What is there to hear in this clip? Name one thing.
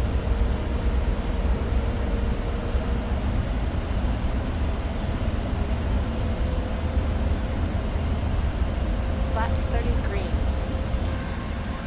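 A jet engine roars steadily with wind rushing past.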